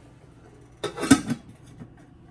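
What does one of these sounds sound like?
A metal lid clanks down onto a cooking pot.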